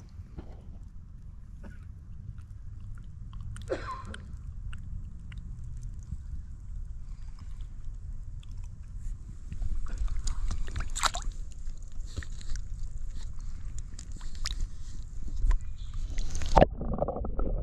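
Water splashes around a fish thrashing in a landing net.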